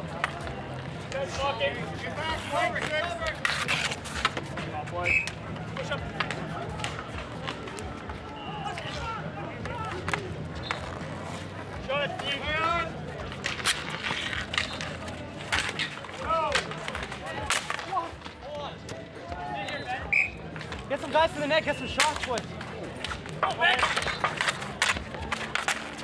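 Hockey sticks clack and scrape on asphalt outdoors.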